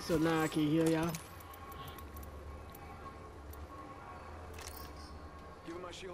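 Short clicks and chimes sound as items are picked up in a video game.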